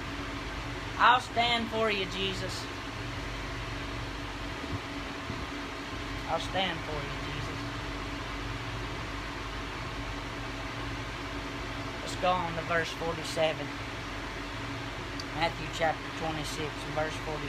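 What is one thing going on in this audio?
A young man speaks nearby in short bursts.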